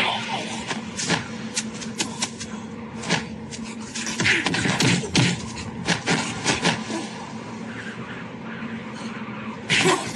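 Punches thud and smack in a fight.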